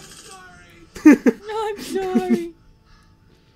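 A young man laughs softly nearby.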